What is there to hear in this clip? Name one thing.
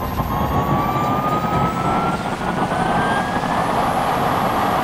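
A high-pitched motor whine rises steadily as the vehicle speeds up.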